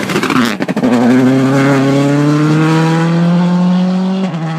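A car speeds past close by.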